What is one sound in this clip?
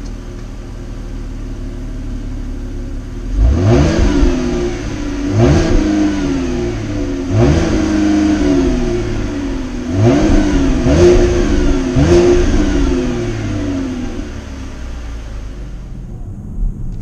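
A car engine idles with a low, steady rumble from the exhaust.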